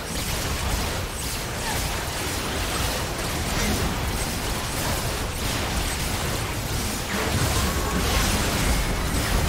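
Magical spell effects crackle, whoosh and boom in a busy fight.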